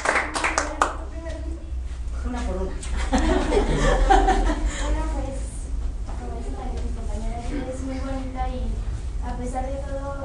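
A crowd of women and men sings together.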